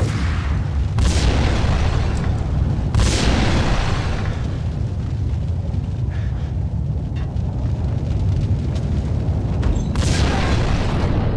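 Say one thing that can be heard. Gunshots ring out sharply.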